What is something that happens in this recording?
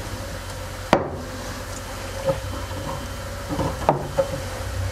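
Rocks knock against glass inside a tank.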